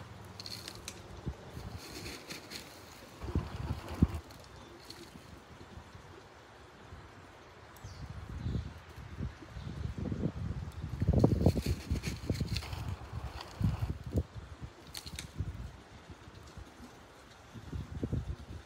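Soil rustles and scrapes as it is pressed into a pot.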